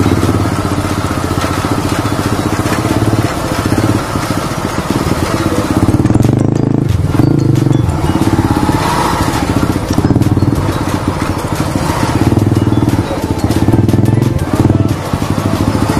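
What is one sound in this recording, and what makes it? A motorcycle engine putters steadily up close, rising and falling with the throttle.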